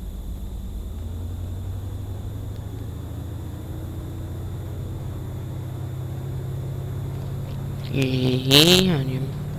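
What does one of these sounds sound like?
A truck engine revs up and its pitch rises as the truck speeds up.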